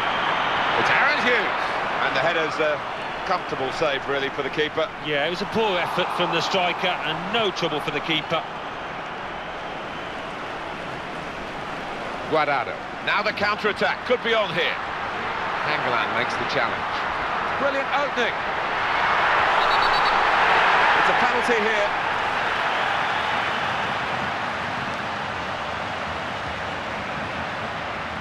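A stadium crowd cheers and roars, swelling loudly for a moment.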